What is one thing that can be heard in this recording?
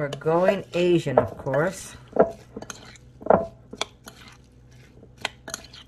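Hands squish and toss moist food in a bowl.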